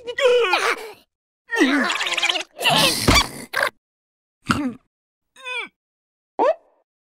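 A high, squeaky cartoonish voice shrieks and babbles in short, excited bursts.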